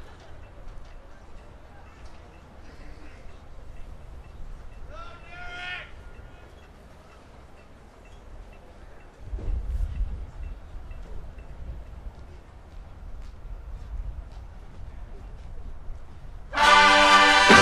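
A crowd murmurs and chatters softly outdoors.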